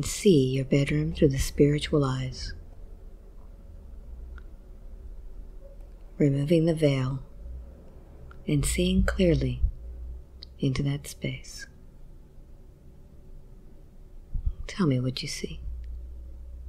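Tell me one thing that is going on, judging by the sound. A woman speaks slowly and quietly, close to a microphone.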